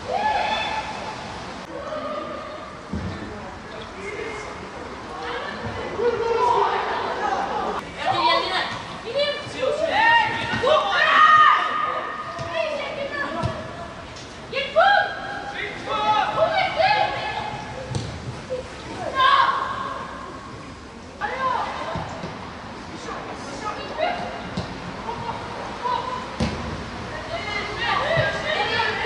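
Young men shout to each other on an open field.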